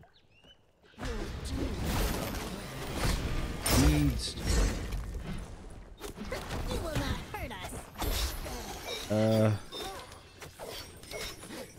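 Fighting sound effects from a video game clash and burst rapidly.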